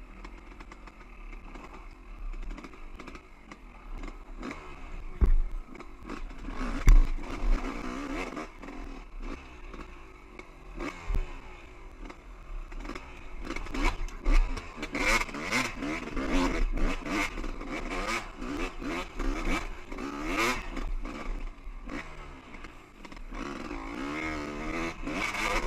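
Knobby tyres crunch and bump over loose rocks.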